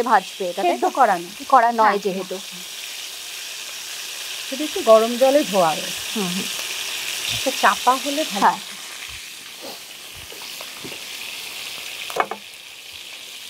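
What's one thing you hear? A woman talks with animation, close to a microphone.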